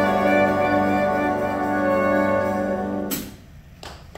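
A jazz band plays a final held chord.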